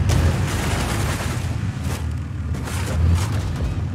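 A vehicle engine rumbles and roars.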